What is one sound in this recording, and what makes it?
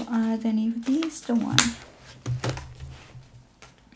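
A planner page flips over with a papery swish.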